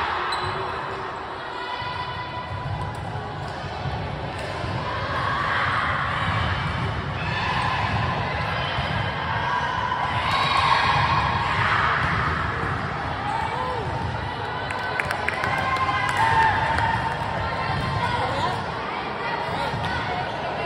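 Young girls call out and shout to each other in a large echoing gym.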